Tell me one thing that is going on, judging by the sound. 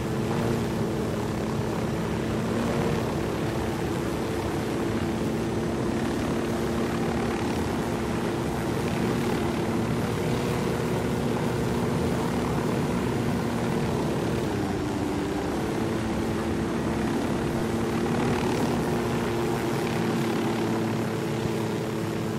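A helicopter's rotor thuds and its engine hums steadily and loudly.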